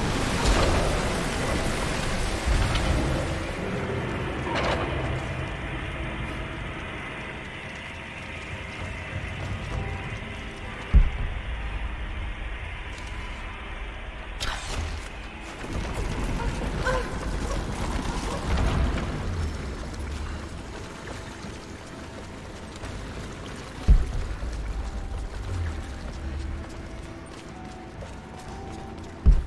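Footsteps scuff on stone.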